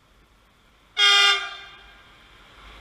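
A train horn blares loudly for a moment.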